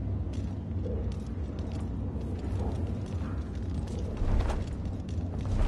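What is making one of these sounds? Footsteps thud on wooden boards nearby.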